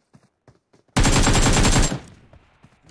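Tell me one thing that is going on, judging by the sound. A rapid burst of gunfire rattles.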